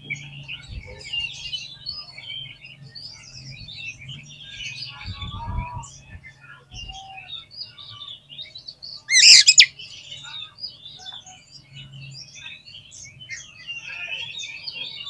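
A songbird sings a varied, warbling song close by.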